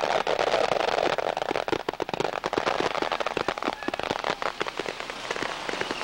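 Fireworks crackle and pop.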